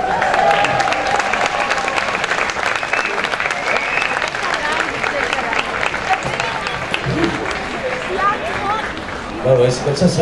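A crowd cheers and applauds loudly outdoors.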